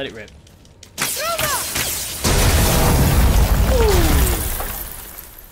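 A loud crash and rumble of shattering bursts out.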